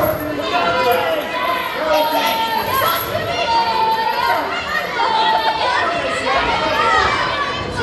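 A large crowd chants loudly in an echoing hall.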